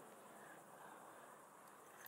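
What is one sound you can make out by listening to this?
A fishing reel clicks as its handle is cranked.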